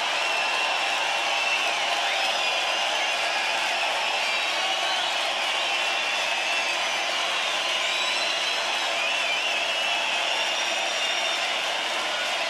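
A huge crowd cheers and screams loudly in a large open venue.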